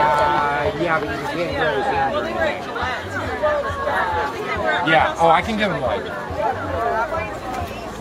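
A group of young people chat and laugh outdoors.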